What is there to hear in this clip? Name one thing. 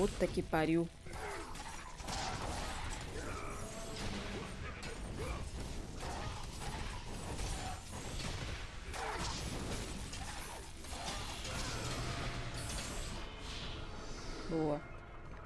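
Blades swish and clash in a fast fight with metallic hits.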